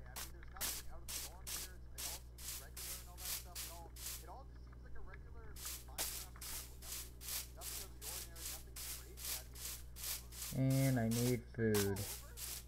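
Footsteps crunch steadily on grass.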